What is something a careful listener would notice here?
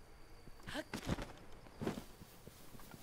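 A glider's cloth flaps open with a whoosh.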